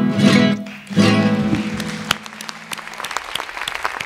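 An acoustic guitar strums closing chords.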